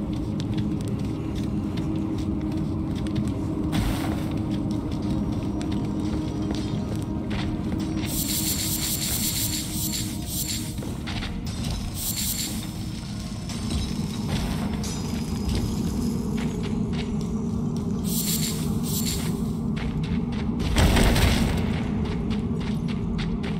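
Footsteps patter quickly on stone and gravel.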